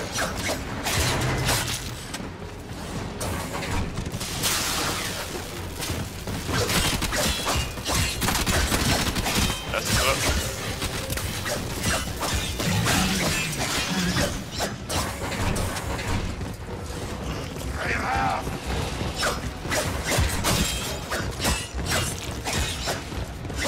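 Energy weapons zap and crackle in bursts.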